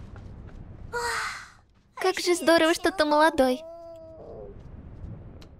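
A young woman speaks playfully up close.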